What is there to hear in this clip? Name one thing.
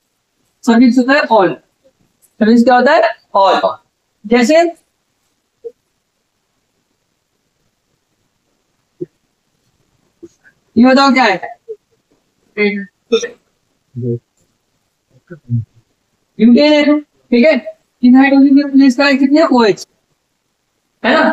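A man speaks calmly and clearly into a close microphone, explaining.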